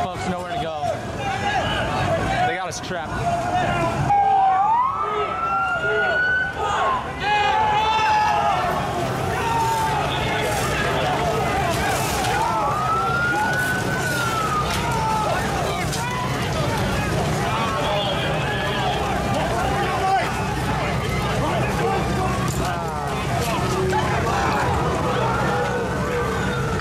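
A crowd of people shouts and chants loudly outdoors.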